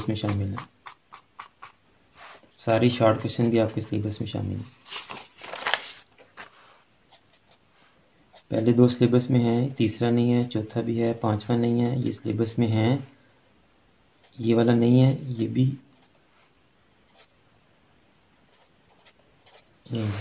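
A felt marker scratches short ticks on paper.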